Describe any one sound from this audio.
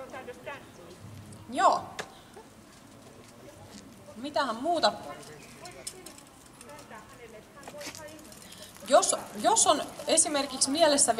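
A young woman sings into a microphone through a loudspeaker outdoors.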